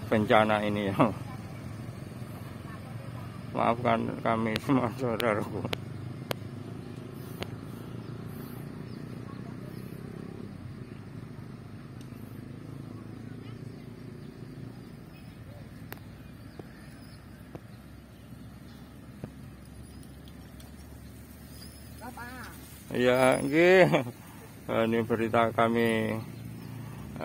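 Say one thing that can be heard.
Motorcycle engines idle and rumble nearby, outdoors.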